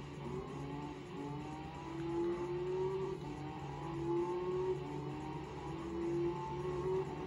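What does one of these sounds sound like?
A racing car engine revs higher and higher as the car shifts up through the gears.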